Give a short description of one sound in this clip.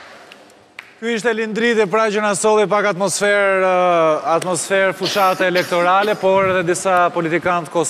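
A young man speaks with animation into a microphone in a large hall.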